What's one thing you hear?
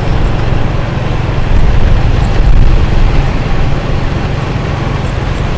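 Wind rushes and rumbles loudly past a moving rider.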